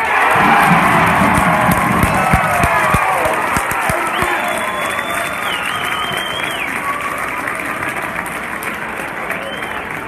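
A crowd cheers loudly in a large echoing gym and slowly quiets down.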